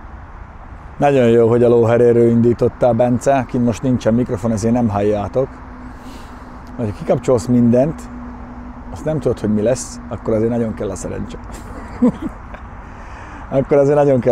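A man talks with animation close to a microphone outdoors.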